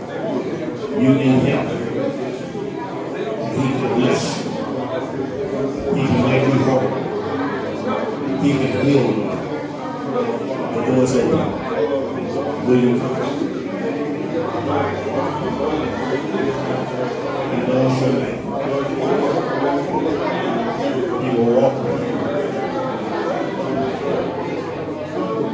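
A large crowd of people murmurs and talks in a room with a light echo.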